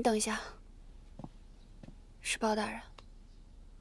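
A young woman speaks briefly and softly nearby.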